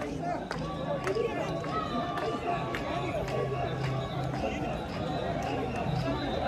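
A crowd of men and women chatter and call out all around outdoors.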